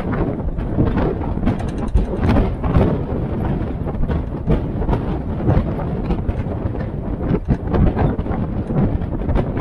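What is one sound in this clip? Wind buffets the microphone in an open-top vehicle.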